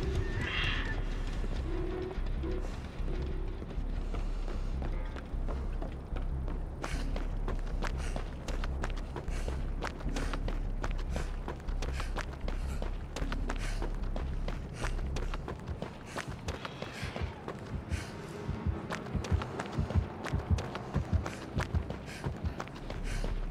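Footsteps run quickly over wooden boards and ground.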